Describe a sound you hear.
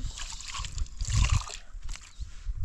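Water pours from a jug onto a tray.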